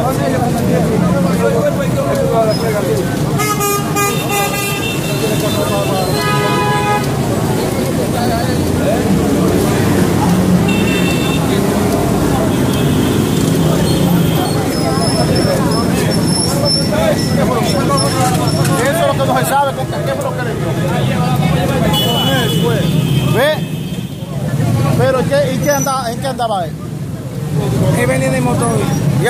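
A man argues loudly up close.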